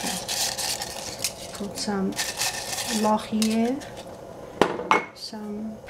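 Dry leaves drop softly into a metal pot.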